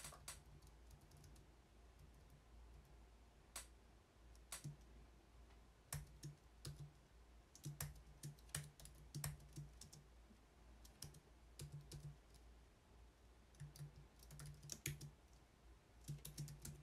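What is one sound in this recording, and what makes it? Keys click on a keyboard in quick bursts.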